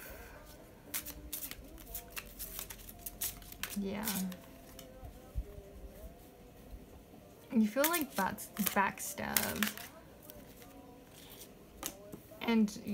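Playing cards are shuffled by hand with crisp, quick clicks.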